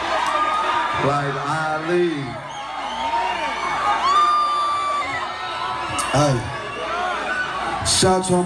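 A young man speaks into a microphone over loudspeakers.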